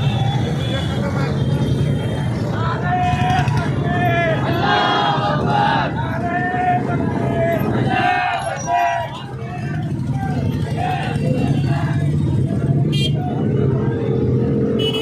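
Many small motorcycles and scooters ride slowly past in a crowd, engines droning.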